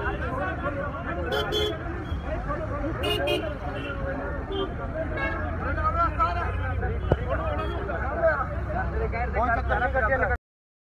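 Several men argue loudly close by, outdoors.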